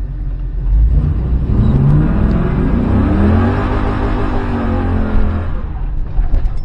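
A car engine revs up, rising in pitch, then eases off.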